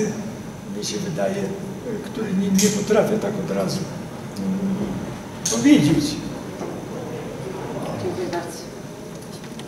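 An elderly man speaks into a microphone.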